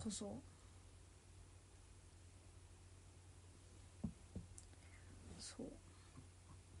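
A young woman speaks softly and briefly, close to a microphone.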